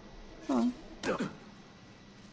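Feet land with a thud on the ground.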